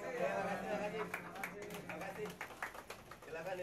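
A crowd claps.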